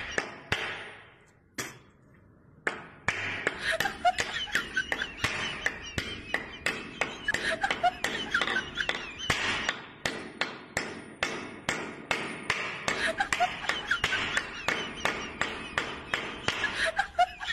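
A hammer knocks repeatedly on wood.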